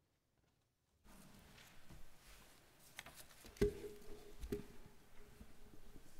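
Papers and a book rustle and thump close to a microphone.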